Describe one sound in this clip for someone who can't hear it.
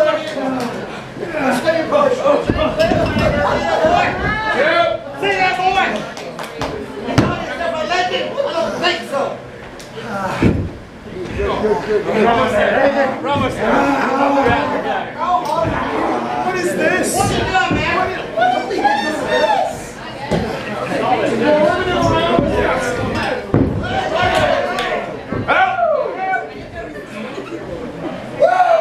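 A man close by shouts with excitement.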